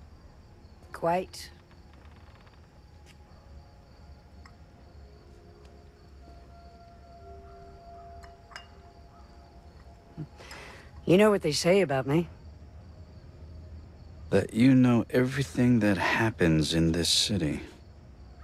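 A young man speaks calmly in a quiet voice.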